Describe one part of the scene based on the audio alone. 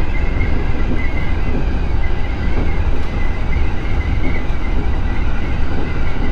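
A train's electric motor hums with a high, steady whine.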